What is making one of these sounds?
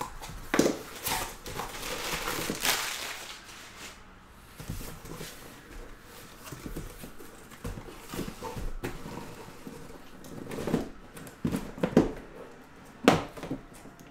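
Cardboard rustles and scrapes as a box is handled and opened.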